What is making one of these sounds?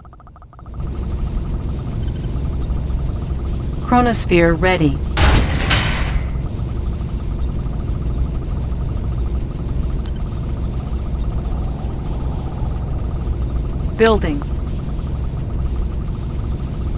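Low engines rumble steadily.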